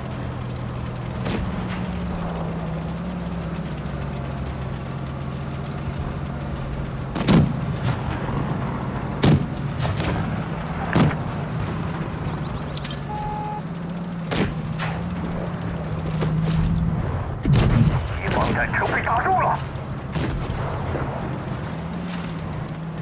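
A tank engine rumbles and whines steadily.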